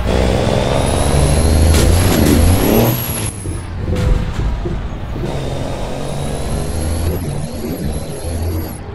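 A truck engine rumbles steadily.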